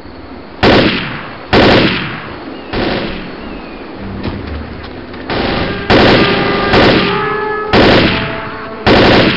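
A rifle fires single loud shots that echo and die away.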